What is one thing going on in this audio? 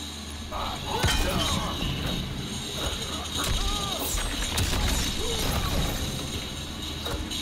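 Heavy punches and kicks land with sharp thuds.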